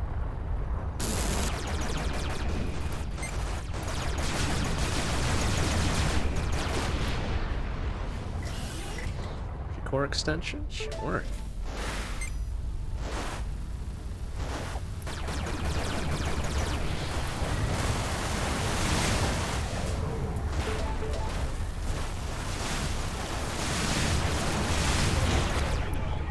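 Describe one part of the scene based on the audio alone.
Laser blasts and explosions from a video game fire rapidly.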